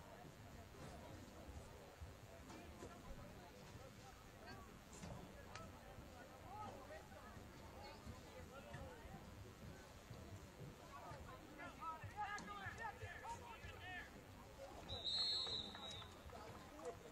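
A crowd of young people shout and cheer outdoors at a distance.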